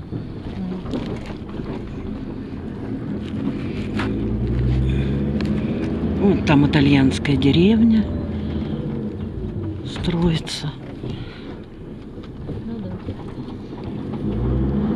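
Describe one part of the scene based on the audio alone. Tyres crunch over a rough dirt road.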